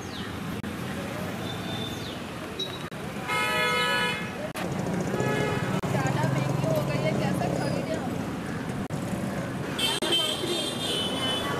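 A crowd of men and women chatters outdoors at a distance.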